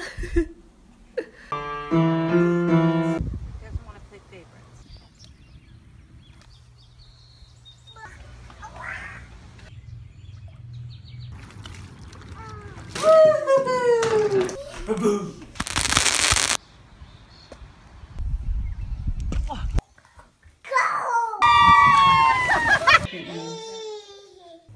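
A young child babbles and laughs close by.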